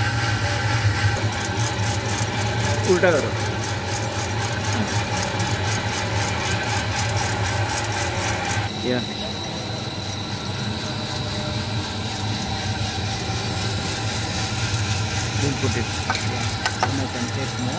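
A metal sample tube scrapes as it slides in and out of a machine.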